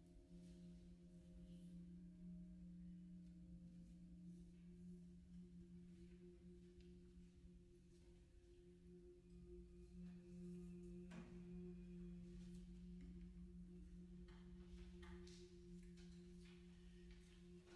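A grand piano plays slow, held low notes.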